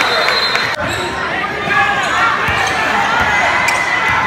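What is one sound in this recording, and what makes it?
A basketball is dribbled on a hardwood floor.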